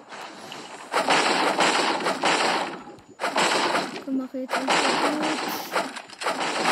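A pickaxe strikes wood in quick, repeated thuds.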